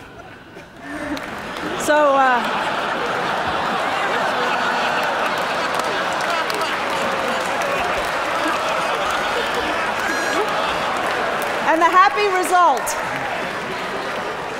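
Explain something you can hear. A large audience laughs loudly in a big hall.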